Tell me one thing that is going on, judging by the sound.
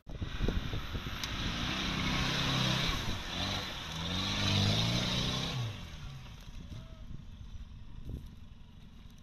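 An off-road vehicle's engine revs hard, rising and falling.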